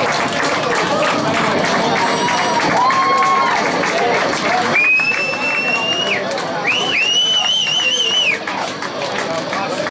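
A crowd chatters loudly in an echoing room.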